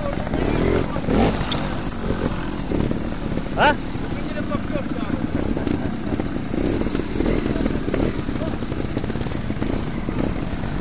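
A motorcycle engine revs and putters up close.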